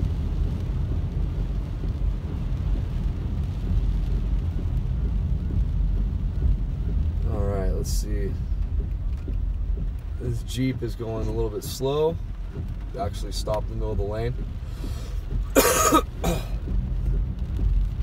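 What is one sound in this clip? Windscreen wipers sweep across the glass.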